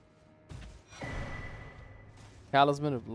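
A shimmering magical whoosh swells and slowly fades.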